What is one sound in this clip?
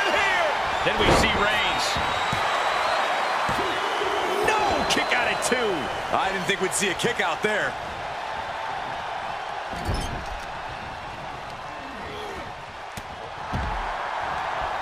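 Heavy bodies slam onto a wrestling ring mat with loud thuds.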